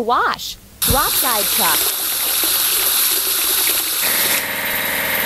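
Water sprays and foam hisses steadily.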